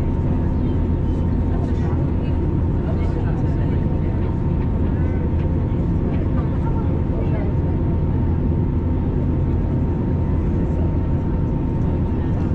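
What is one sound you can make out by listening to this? Jet engines roar steadily, heard from inside an airliner cabin.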